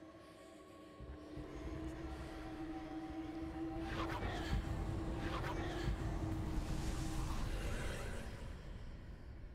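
A magic spell whooshes and crackles with a rushing roar.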